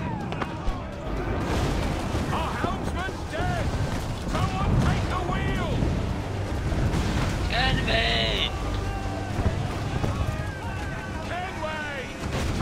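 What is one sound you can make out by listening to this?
Waves surge and crash against a wooden ship.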